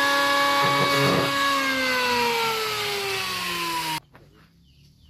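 An electric power tool whines loudly, then winds down.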